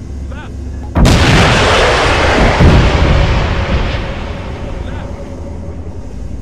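A loud explosion booms and then rumbles away slowly.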